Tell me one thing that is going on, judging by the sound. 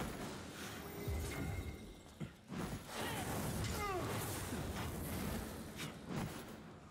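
Flames whoosh and crackle.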